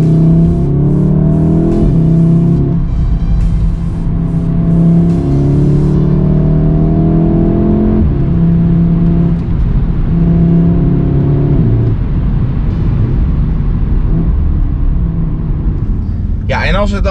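Wind and road noise rush past the car.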